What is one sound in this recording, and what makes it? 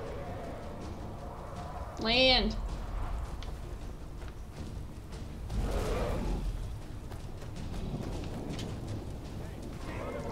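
A young woman talks quietly into a microphone.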